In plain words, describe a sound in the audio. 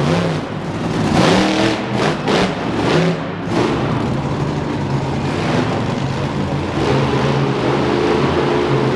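A crowd cheers in a large echoing arena.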